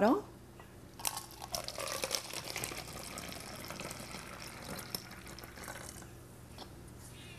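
Liquid trickles as it is poured into a bottle.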